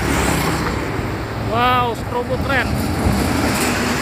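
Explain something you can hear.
A bus engine roars as the bus passes close by.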